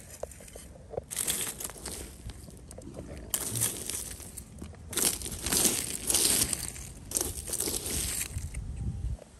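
Hands brush and shift small stones.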